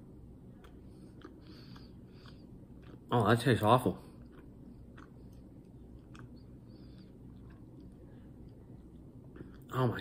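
A young man chews food with soft smacking sounds.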